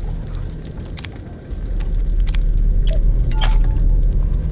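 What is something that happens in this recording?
Short electronic clicks sound as menu items are selected.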